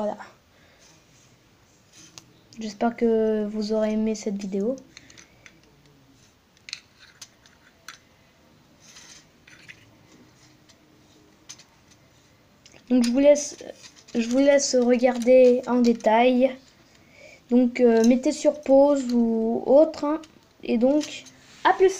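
Plastic toy bricks click and rattle as hands move them about.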